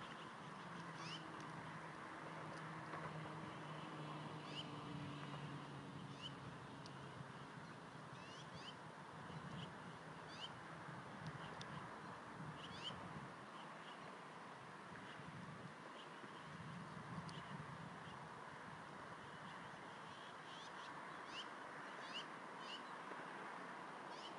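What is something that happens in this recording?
Small chicks peep in short, high chirps.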